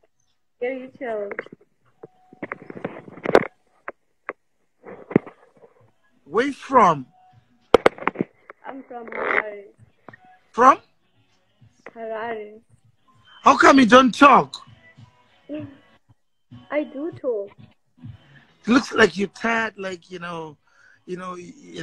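A young woman talks and laughs over an online call.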